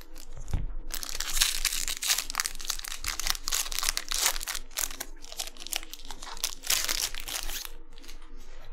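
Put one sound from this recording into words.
A plastic wrapper crinkles and tears.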